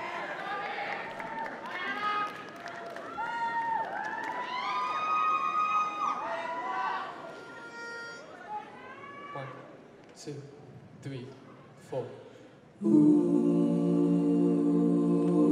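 A group of voices sings together in a large echoing hall.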